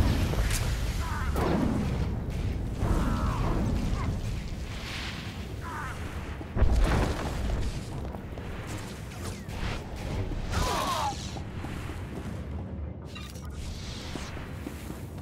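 A lightsaber hums and swings with sharp whooshing strokes.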